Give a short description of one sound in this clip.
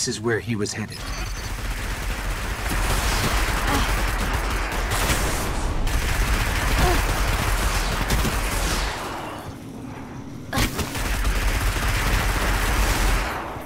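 Gunfire and explosions crackle loudly in a battle.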